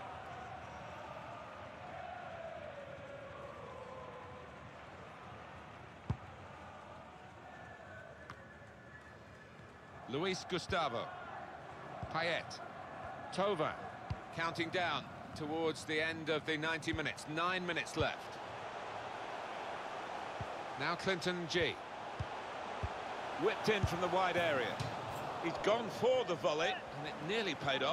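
A stadium crowd murmurs and roars steadily.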